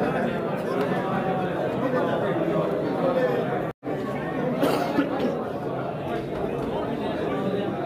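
A crowd of men chatter and greet one another in a large echoing hall.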